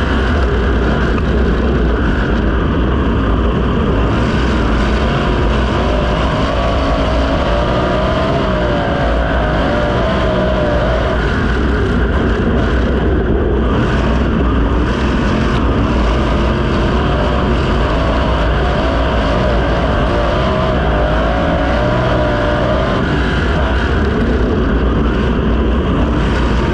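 A racing car engine roars loudly and close, rising and falling in pitch as it revs through the corners.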